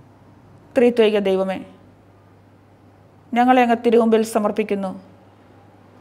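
A middle-aged woman prays aloud calmly into a close microphone.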